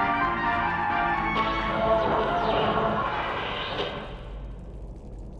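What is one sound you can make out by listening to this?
Old tinny music plays from a radio and fades away.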